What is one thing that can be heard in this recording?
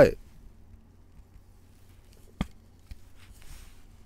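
A card slides into a plastic sleeve with a soft rustle.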